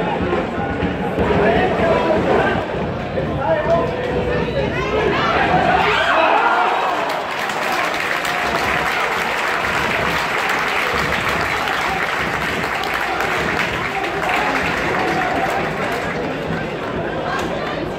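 Fans chant in unison across an open stadium.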